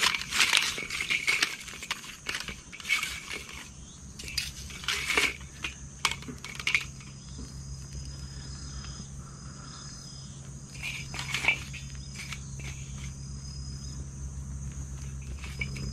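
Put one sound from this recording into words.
Dry sticks clatter and clink as they are stacked in a metal bowl.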